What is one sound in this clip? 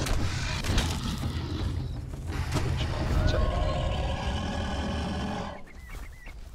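A large beast growls during a fight.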